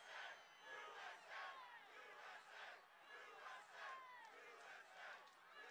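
A large crowd of men and women shouts and screams in agitation outdoors.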